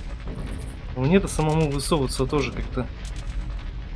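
A man speaks over a microphone.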